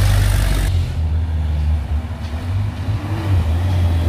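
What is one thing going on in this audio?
Motorcycle engines buzz as motorcycles pass.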